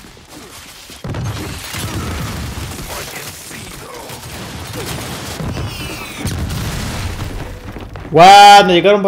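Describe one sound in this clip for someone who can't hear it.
Guns fire in rapid bursts amid a loud battle.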